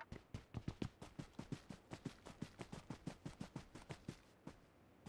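Quick footsteps thud steadily across grass.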